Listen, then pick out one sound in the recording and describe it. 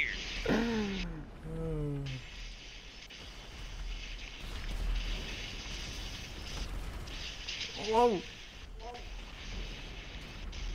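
A rocket booster blasts with a loud rushing roar.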